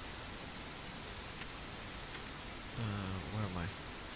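A page of a book turns with a papery rustle.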